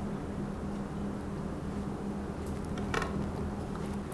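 Liquid pours into a glass jug.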